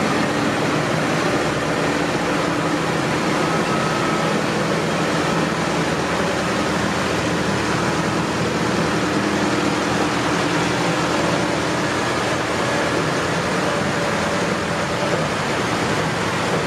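Several diesel farm tractors idle.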